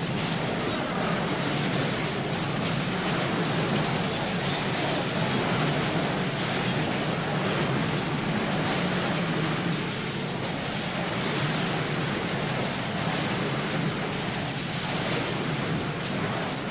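Game combat sounds clash and crackle steadily.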